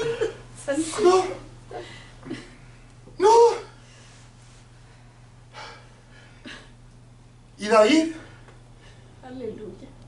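An elderly man speaks with animation, pausing often.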